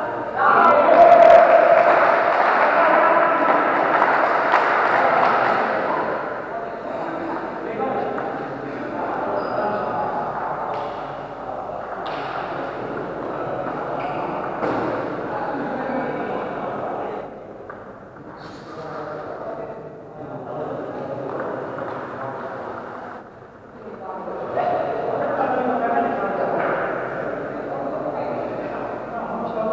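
Men and women murmur and chatter in a large echoing hall.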